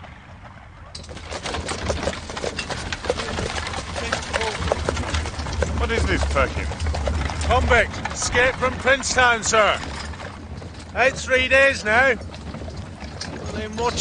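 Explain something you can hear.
Horse hooves clop on a dirt track.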